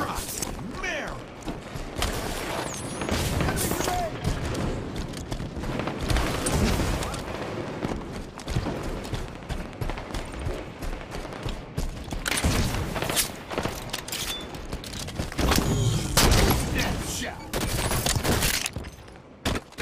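Gunshots crack in quick bursts close by.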